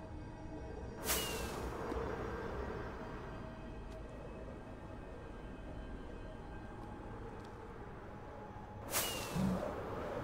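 A firework launches with a sharp whoosh.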